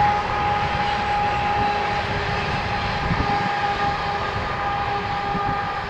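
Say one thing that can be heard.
A distant freight train rumbles steadily along the tracks.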